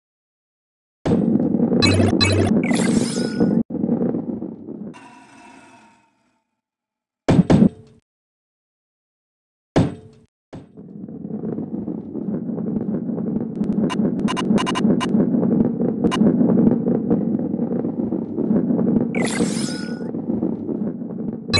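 A ball rolls on a wooden track with a low rumble.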